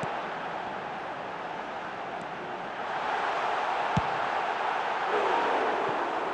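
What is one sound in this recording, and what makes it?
A stadium crowd roars steadily and swells louder.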